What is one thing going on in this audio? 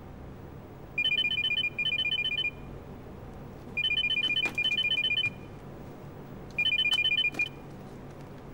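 A mobile phone rings in short bursts.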